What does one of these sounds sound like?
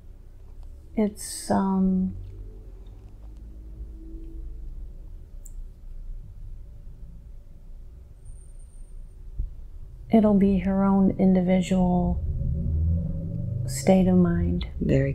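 A woman speaks softly and slowly into a close microphone.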